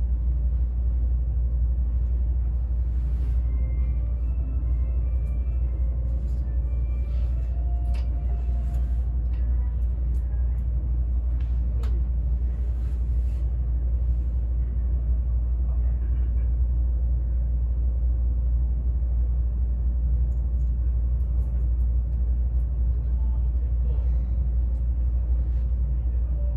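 A train hums and rumbles steadily from inside the carriage.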